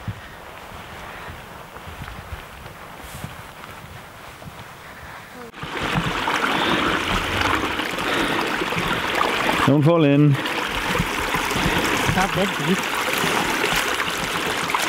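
Boots crunch through dry grass and wet ground.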